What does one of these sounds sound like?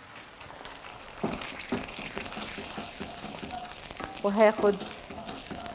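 Food sizzles softly in hot pans.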